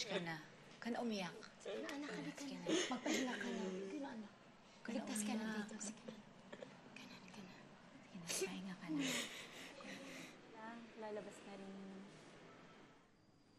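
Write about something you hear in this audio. A boy sobs and cries out.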